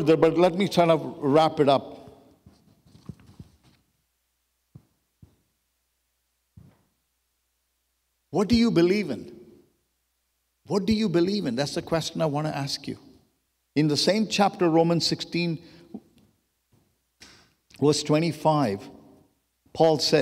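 A middle-aged man speaks calmly and earnestly into a microphone, heard through a loudspeaker, with pauses between phrases.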